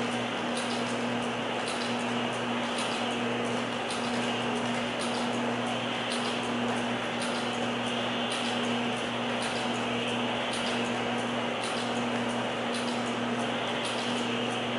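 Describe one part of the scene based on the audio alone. A machine motor hums steadily while turning a spool.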